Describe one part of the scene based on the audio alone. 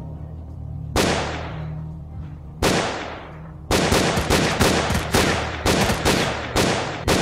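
A rifle fires loud single shots that echo across open ground.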